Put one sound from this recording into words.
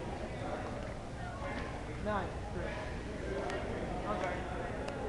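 Several people talk in a large echoing hall.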